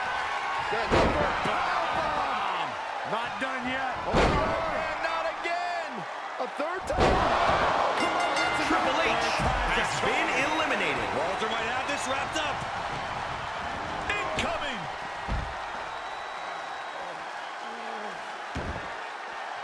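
Heavy thuds ring out as bodies slam onto a wrestling ring.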